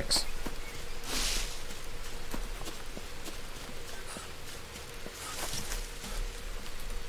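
Leaves and undergrowth rustle as someone pushes through.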